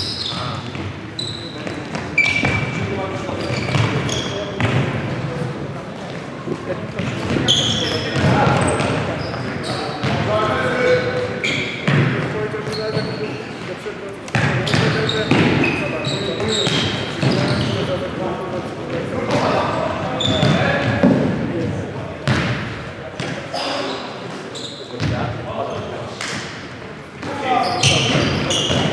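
A futsal ball is kicked with dull thuds that echo around a large hall.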